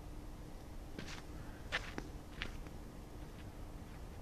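Footsteps scuff briefly on hard ground close by.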